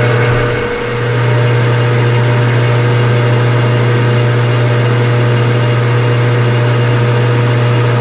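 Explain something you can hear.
A cutting tool scrapes against a spinning metal rod.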